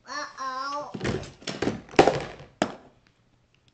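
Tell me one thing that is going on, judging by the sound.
Plastic toys clatter out of a crate onto a wooden floor.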